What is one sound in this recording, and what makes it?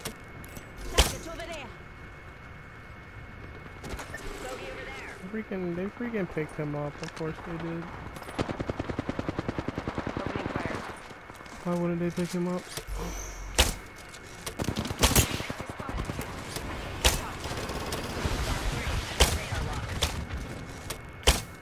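A bow fires arrows with sharp snaps.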